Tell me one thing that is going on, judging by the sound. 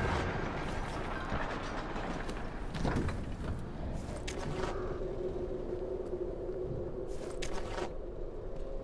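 Metal locker doors rattle and clang open.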